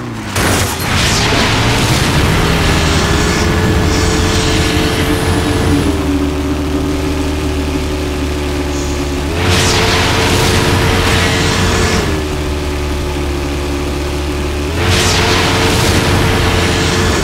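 A buggy engine roars steadily, rising and dropping in pitch as it shifts gears.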